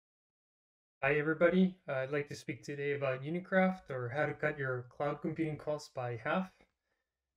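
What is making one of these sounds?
A man speaks calmly through a microphone, as on an online call.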